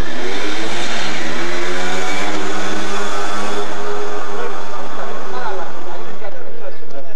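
A motor scooter engine roars past close by, its pitch falling as it goes.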